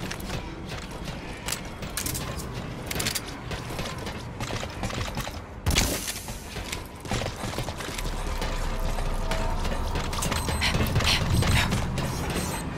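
Footsteps thud quickly on a metal deck.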